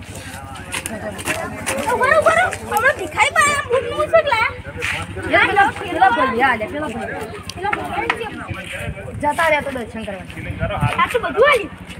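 A young boy answers excitedly close by.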